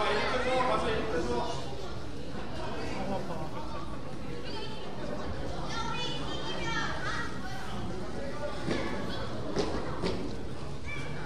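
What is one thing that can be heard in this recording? Young players' voices and a crowd murmur echo through a large gym.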